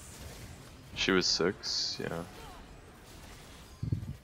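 Magic spell effects whoosh and zap in a video game fight.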